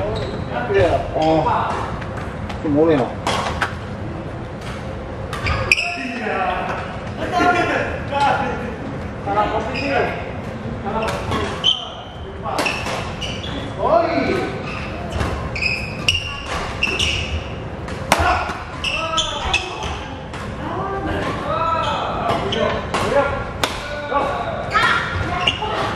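Sports shoes squeak on a wooden court floor.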